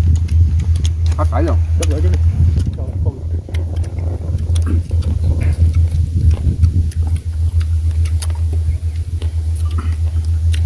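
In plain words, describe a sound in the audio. Bowls and utensils clink on a table.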